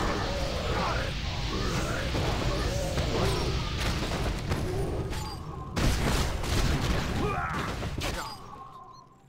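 Magic spells crackle and whoosh in a noisy battle.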